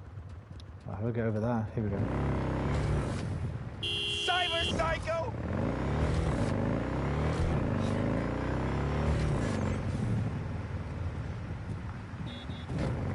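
A motorcycle engine revs and rises and falls in pitch.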